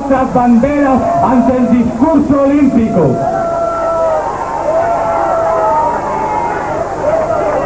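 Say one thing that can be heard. A man sings into a microphone, heard through loudspeakers in a large echoing hall.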